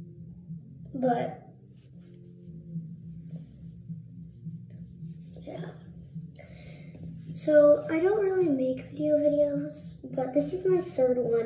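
A towel rubs against a face.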